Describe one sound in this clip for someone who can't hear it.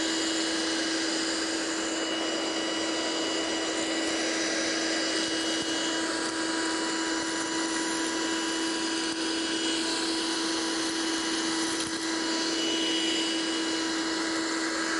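A small handheld vacuum cleaner whirs steadily as it sucks up crumbs from a carpet.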